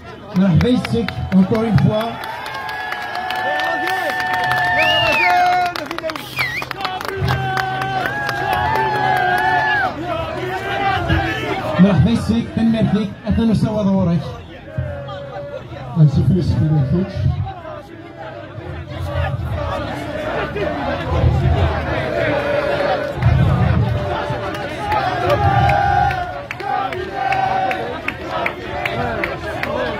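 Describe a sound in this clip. A large outdoor crowd chants and cheers loudly.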